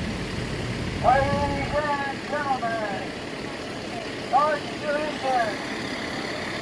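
A young girl calls out in a high voice nearby.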